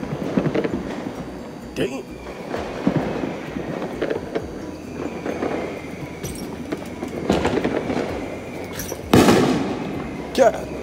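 Thunder rumbles and booms outdoors.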